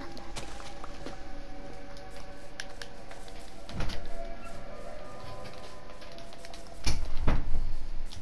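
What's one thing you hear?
Footsteps thud softly on grass.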